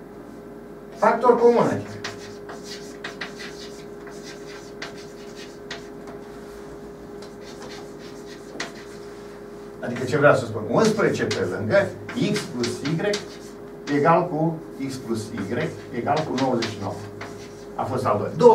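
An elderly man speaks calmly in a lecturing tone.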